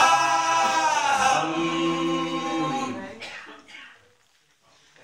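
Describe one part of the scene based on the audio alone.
A group of men sing together into microphones.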